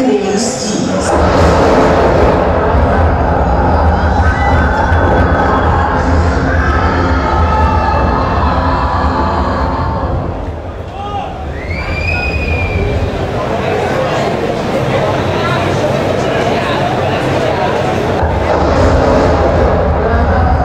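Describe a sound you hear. Music plays with a deep bass beat through loudspeakers in a large echoing hall.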